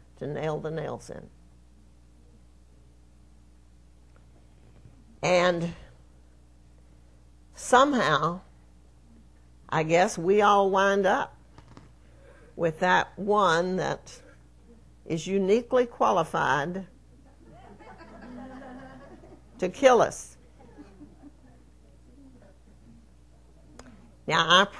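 An elderly woman speaks with animation into a microphone, in short bursts with pauses.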